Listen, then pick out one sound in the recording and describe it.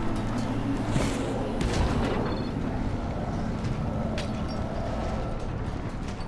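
Footsteps thud on a metal roof.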